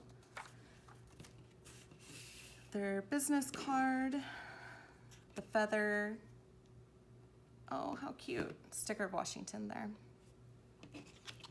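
Paper cards are laid down on a table with soft taps.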